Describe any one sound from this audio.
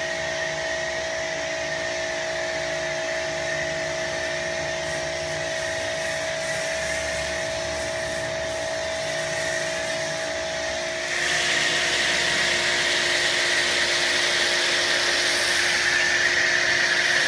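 A pressure washer sprays foam onto a car with a steady hiss.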